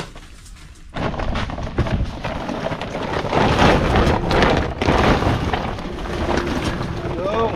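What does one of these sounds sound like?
Eggplants tumble out of a sack into a cart with a loud rustling clatter.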